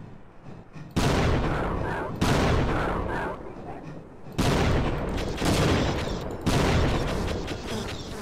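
Explosions boom loudly, one after another.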